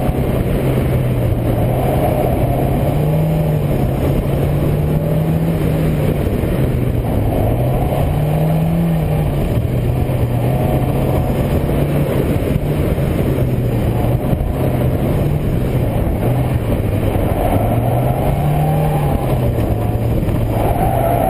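A car engine hums and revs up and down as the car drives.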